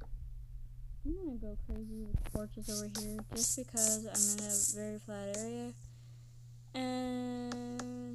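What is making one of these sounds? A young girl speaks with animation, close to a microphone.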